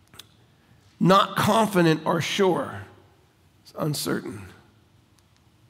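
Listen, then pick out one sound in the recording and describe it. A middle-aged man speaks calmly into a headset microphone.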